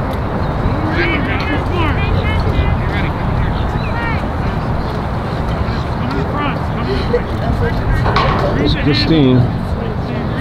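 Girls call out and shout across a field at a distance.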